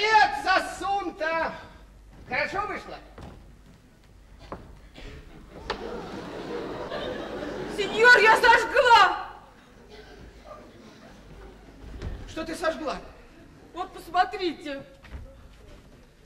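A man speaks expressively on a stage in a large hall.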